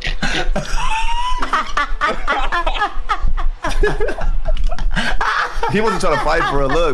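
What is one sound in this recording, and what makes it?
A young man laughs loudly close to a microphone.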